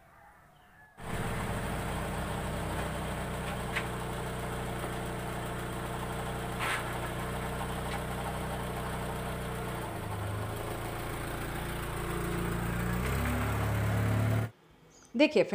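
A car engine idles steadily nearby, revving up slightly near the end.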